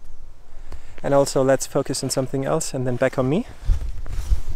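A young man speaks calmly, close to the microphone.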